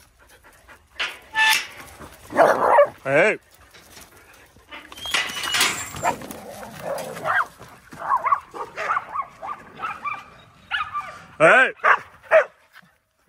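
Dogs bark and yelp excitedly.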